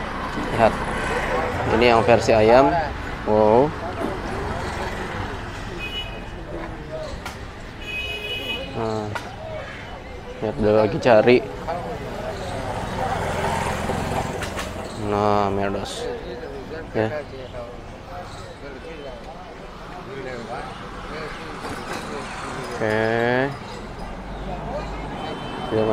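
Street traffic hums steadily in the background outdoors.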